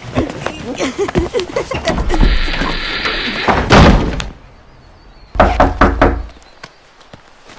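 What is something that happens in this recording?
A teenage boy shouts during a scuffle.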